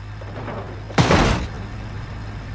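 A car crashes hard onto the ground with loud metallic crunching.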